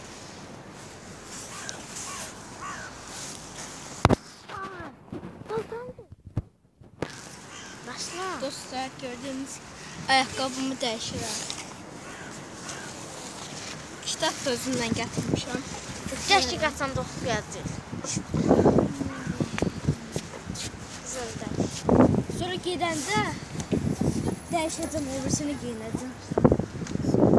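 A boy talks with animation close to a phone's microphone.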